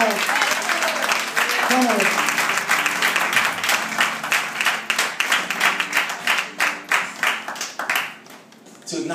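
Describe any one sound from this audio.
A woman claps her hands rhythmically.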